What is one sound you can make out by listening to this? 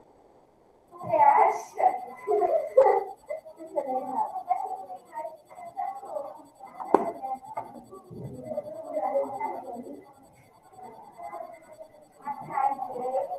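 A woman speaks calmly through a computer microphone.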